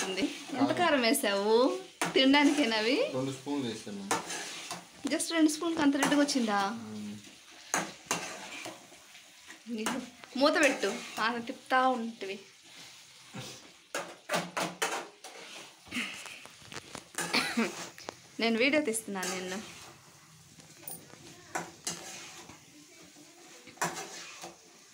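A metal spatula scrapes and clinks against a pan.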